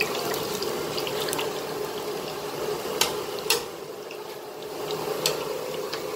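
A metal skimmer scrapes and clinks in a steel bowl.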